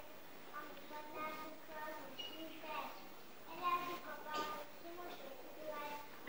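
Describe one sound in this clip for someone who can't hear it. A young girl speaks in a high voice, as if reciting lines in a play, heard from a distance in a hall.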